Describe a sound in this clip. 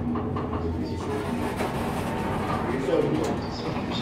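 Elevator doors slide open with a rumble.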